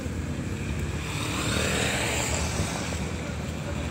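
A motorcycle passes close by.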